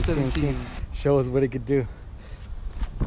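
A man speaks calmly outdoors, close by.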